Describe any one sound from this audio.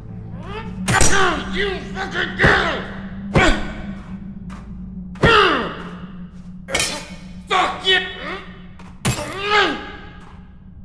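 A metal pipe strikes hard with ringing clangs.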